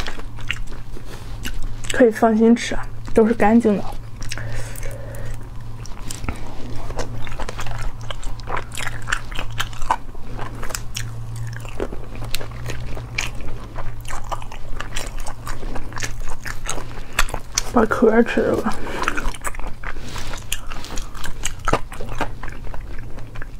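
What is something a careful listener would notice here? A young woman eats close to a microphone, with wet chewing and sucking sounds.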